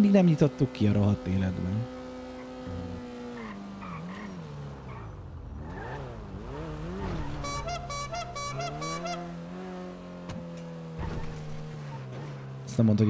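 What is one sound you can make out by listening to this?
A car engine hums and its pitch rises and falls as the car speeds up and slows down.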